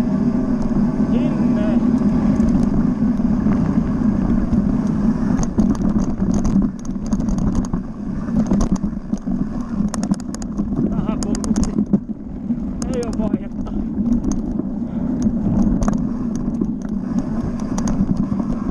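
An enduro motorcycle engine drones as the bike rides at speed.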